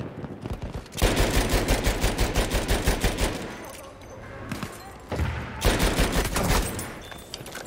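A light machine gun fires rapid bursts.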